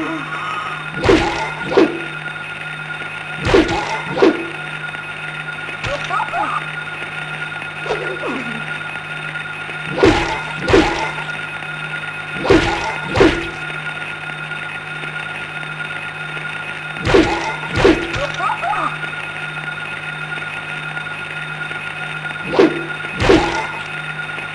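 A pistol fires in pairs of loud, sharp shots that echo in a hard-walled room.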